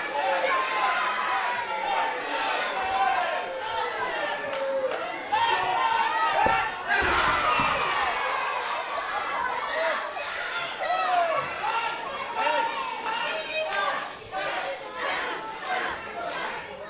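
A crowd of children and adults cheers and shouts loudly in an echoing hall.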